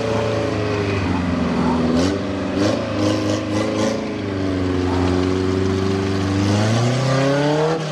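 Mud squelches and splashes under tyres.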